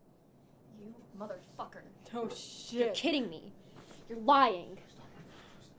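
A young man cries out in pain.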